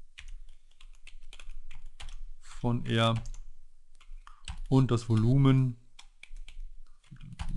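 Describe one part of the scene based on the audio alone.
Keyboard keys click quickly as someone types.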